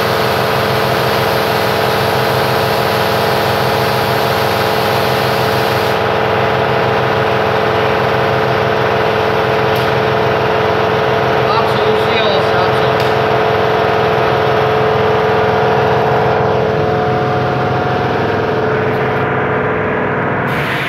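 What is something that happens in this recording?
Fog sprays into an enclosed space with a loud, steady hiss and drone.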